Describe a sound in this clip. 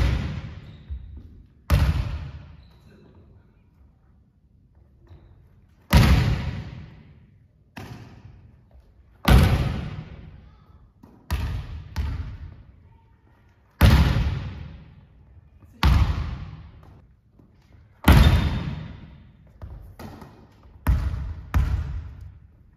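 A volleyball bounces on a wooden floor.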